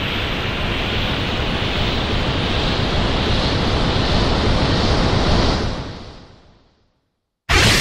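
A swirling rush of magical energy roars steadily, then fades away.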